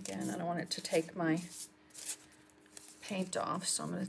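Masking tape peels and tears from a roll.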